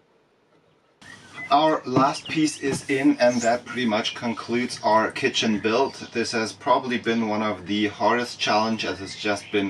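A young man talks to the listener close by, with animation.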